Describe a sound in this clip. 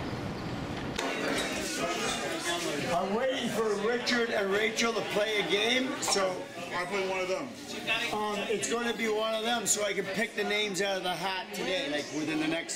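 A crowd of men and women chatter in a large echoing room.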